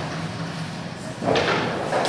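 Sparks from a firework hiss and crackle.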